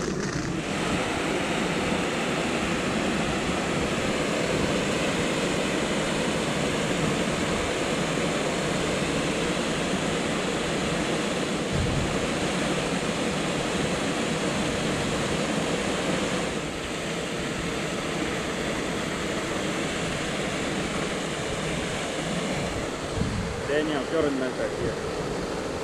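A powerful water jet roars and hisses steadily outdoors.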